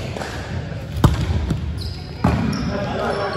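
A volleyball is struck with a sharp smack in a large echoing gym.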